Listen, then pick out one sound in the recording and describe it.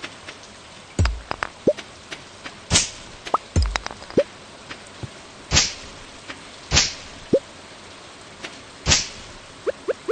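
Sharp swishing thuds of a tool striking weeds and stones sound again and again.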